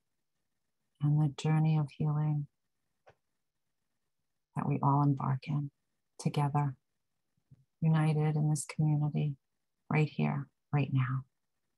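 A woman speaks calmly through a microphone in an online call, with pauses.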